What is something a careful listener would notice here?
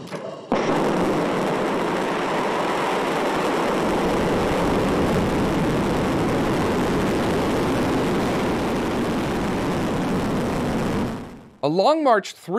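A rocket engine roars loudly and steadily during liftoff.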